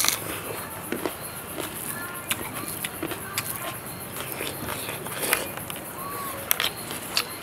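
A man chews food noisily close to a microphone.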